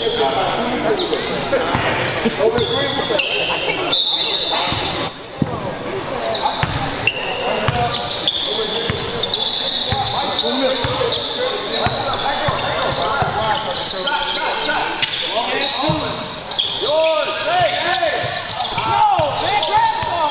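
Spectators chatter nearby in an echoing gym.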